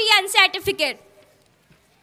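A woman speaks loudly into a microphone over loudspeakers.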